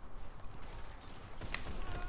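A handgun fires sharp shots.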